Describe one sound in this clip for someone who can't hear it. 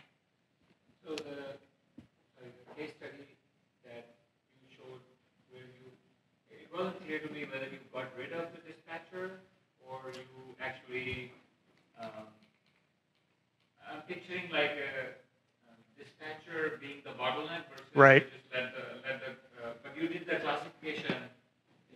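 A man speaks calmly into a microphone, in pauses.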